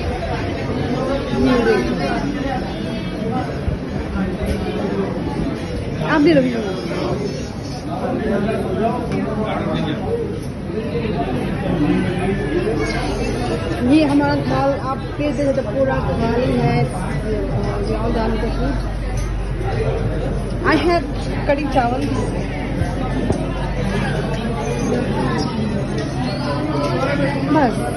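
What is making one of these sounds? A crowd of men, women and children chatters all around in a busy, echoing room.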